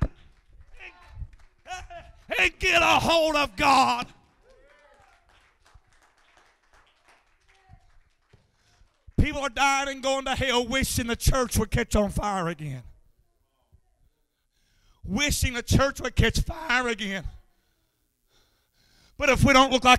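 A man preaches loudly and with passion through a microphone, in bursts with pauses, in an echoing room.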